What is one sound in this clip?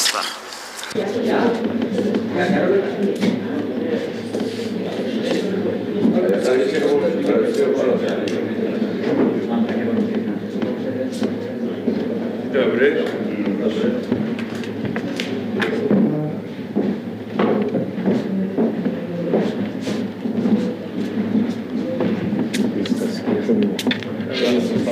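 A group of men murmur and talk in a room.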